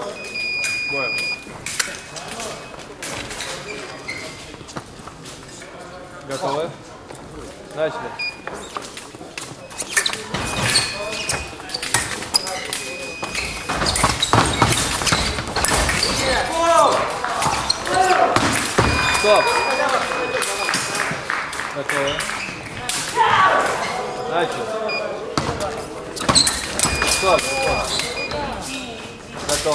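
Blades clash and click as fencers duel.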